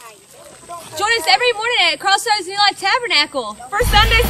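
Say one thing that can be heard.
Two young women talk and laugh close by.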